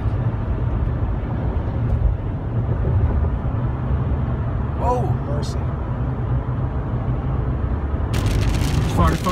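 Tyres and wind rumble at highway speed, heard from inside a pickup truck's cab.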